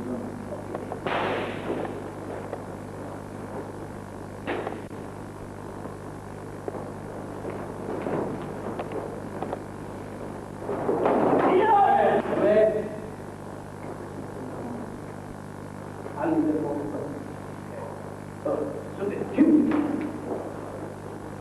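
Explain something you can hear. Men shout sharply in an echoing hall.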